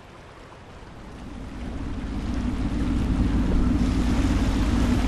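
A motorboat engine rumbles and grows louder.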